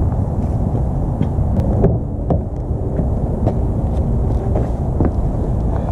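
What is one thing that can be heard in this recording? Boots step on pavement.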